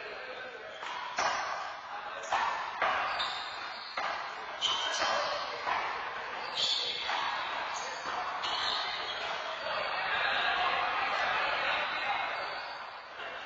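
Sneakers squeak and shuffle on a hard floor.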